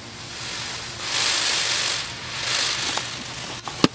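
A peacock shakes its spread tail feathers with a rustling shimmer.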